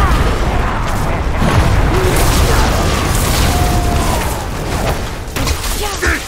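A fiery spell roars and swirls.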